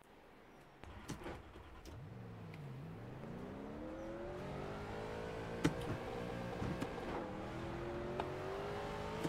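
A race car engine revs and climbs in pitch.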